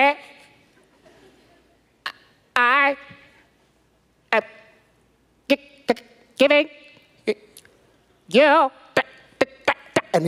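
A man speaks with animation into a microphone, echoing in a large hall.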